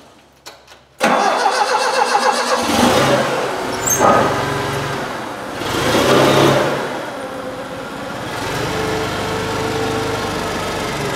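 A forklift engine starts and runs with a rough, steady rumble.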